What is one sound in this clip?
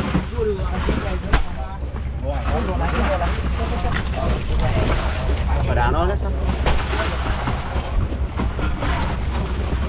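Fish thud and slap onto a plastic surface.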